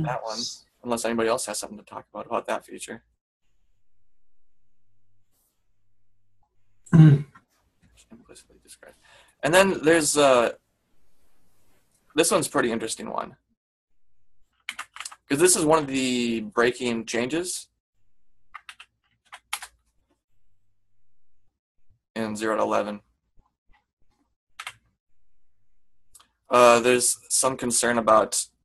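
A man speaks calmly into a microphone, in bursts with pauses.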